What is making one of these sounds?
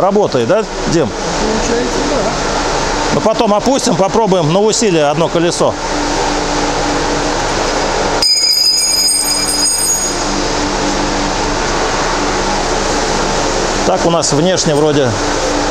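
A man talks calmly and close by, in a room with some echo.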